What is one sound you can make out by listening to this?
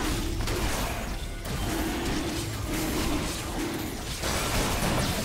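Magic blasts and weapon hits crackle and whoosh in a busy fight.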